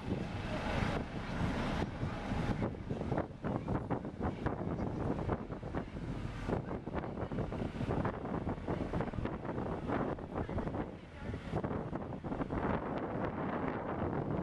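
A busy street crowd murmurs and chatters outdoors.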